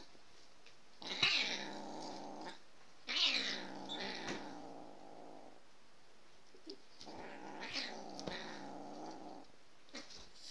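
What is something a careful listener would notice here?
A dog growls playfully in bursts.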